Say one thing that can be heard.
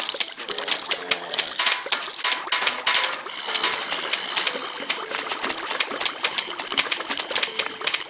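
Cartoon plants rapidly fire peas with quick popping sounds.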